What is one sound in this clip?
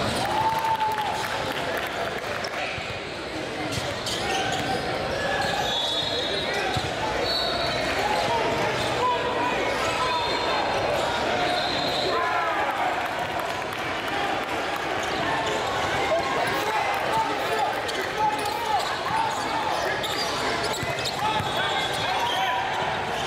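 A crowd chatters and shouts loudly in a large echoing gym.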